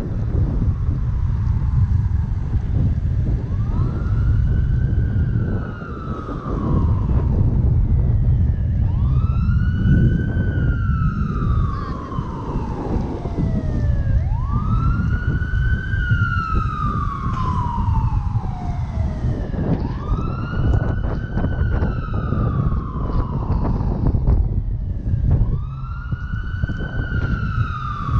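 Wind rumbles loudly against a moving bicycle rider.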